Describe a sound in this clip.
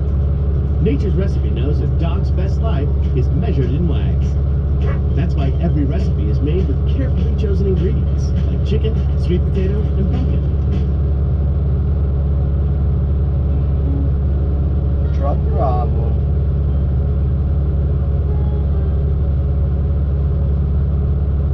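A heavy machine's diesel engine hums steadily close by.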